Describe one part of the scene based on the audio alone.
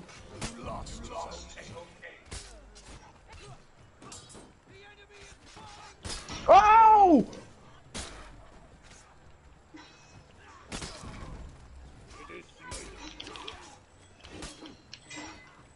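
Swords clash and clang in a melee battle.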